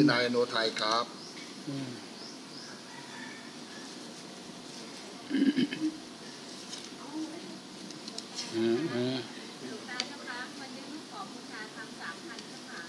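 An elderly man speaks slowly and quietly into a microphone.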